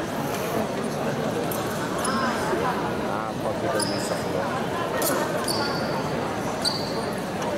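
Fencing blades clash and scrape together.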